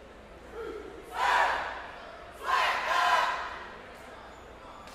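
A brass band blasts short, loud bursts of horns in a large echoing gym.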